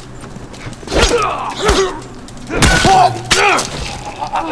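Heavy blows land with loud thuds.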